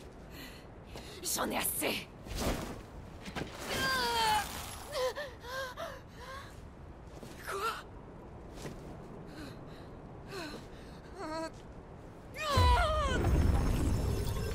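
A woman shouts angrily, close by.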